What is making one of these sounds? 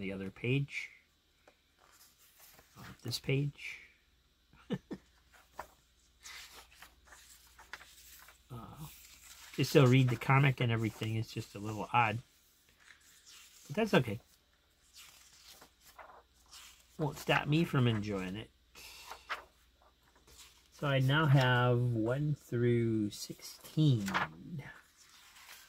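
Paper pages rustle and flip as they are turned by hand.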